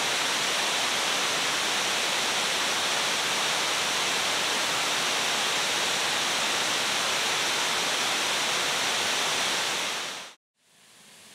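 Glowing embers hiss and crackle softly in a fire.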